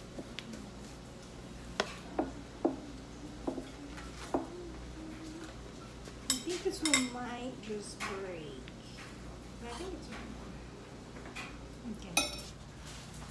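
Spoons scrape and tap against bowls.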